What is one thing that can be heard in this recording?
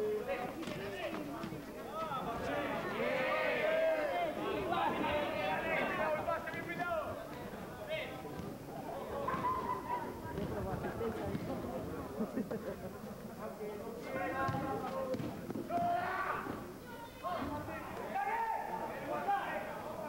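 A crowd of men chatters and calls out nearby, outdoors.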